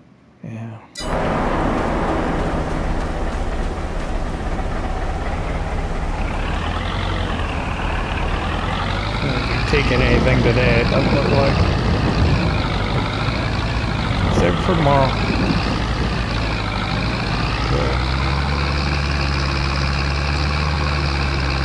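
A tractor engine rumbles steadily and rises in pitch as it speeds up.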